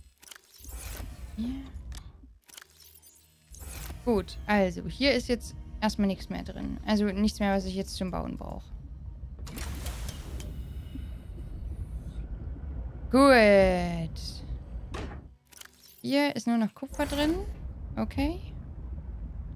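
A young woman talks with animation into a microphone, close up.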